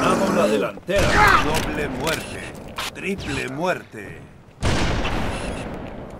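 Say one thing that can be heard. Rifle shots crack sharply.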